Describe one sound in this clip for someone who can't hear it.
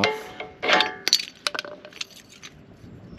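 Metal tools clink and clatter on pavement.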